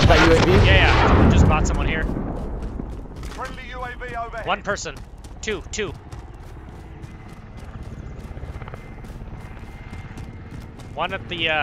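A helicopter's rotor thumps nearby.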